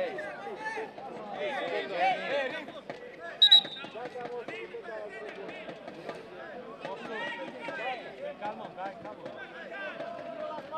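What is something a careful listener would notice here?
Men shout and call to one another outdoors.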